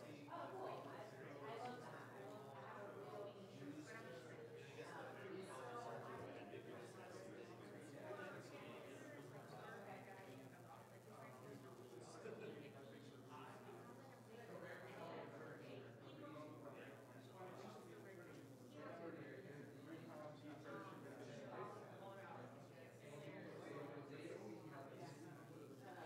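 A crowd of men and women chat all around in a large room.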